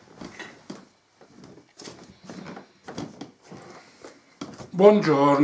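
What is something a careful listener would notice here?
Clothing rustles as a man sits down.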